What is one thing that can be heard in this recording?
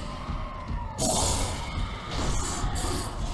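A sword slices into flesh with a wet splatter.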